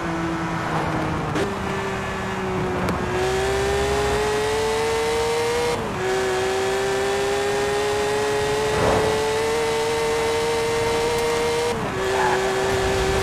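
A sports car engine roars at high speed, its pitch climbing and dropping with each gear change.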